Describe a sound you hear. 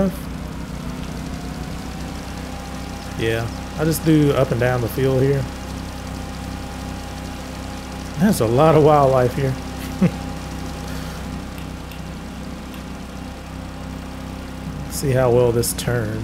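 A small mower engine drones steadily.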